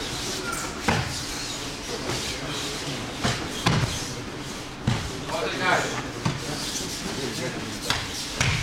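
Bodies thud onto a padded mat in a large echoing hall.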